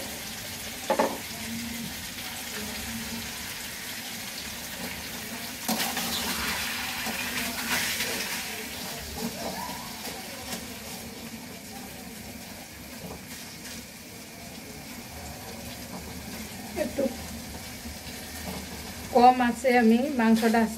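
Food sizzles and fries in a pan.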